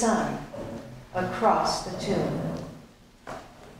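A woman speaks into a microphone, heard through loudspeakers in an echoing room.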